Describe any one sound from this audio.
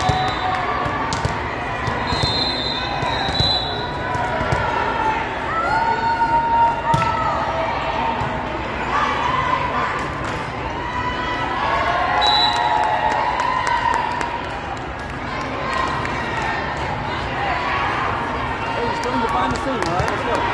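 Players' shoes squeak sharply on the court floor.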